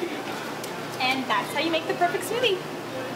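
A young woman speaks cheerfully close by.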